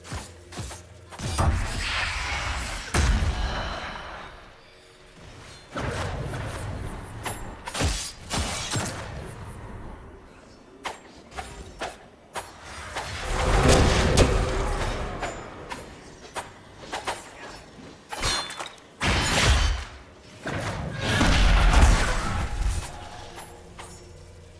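Magic spells burst and crackle in loud blasts.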